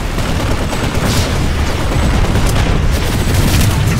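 Gunfire rattles steadily.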